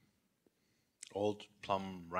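A man speaks into a handheld microphone in a room with echo.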